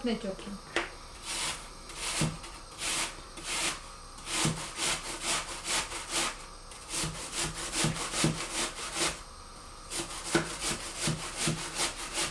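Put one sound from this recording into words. An apple is rubbed against a metal grater in quick rasping strokes.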